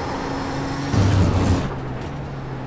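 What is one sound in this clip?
A loud low thump and rumble comes from a racing car.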